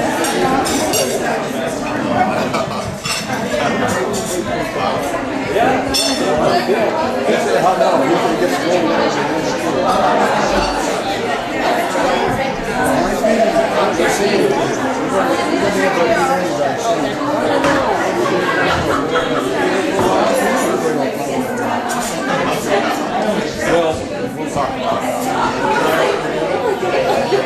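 A crowd of men and women chatter loudly all around in a busy room.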